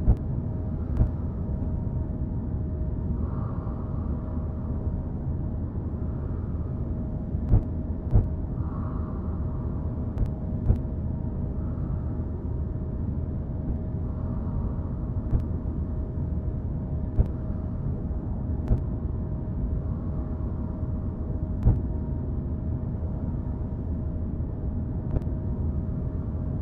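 A spaceship's thrusters hum and rumble steadily.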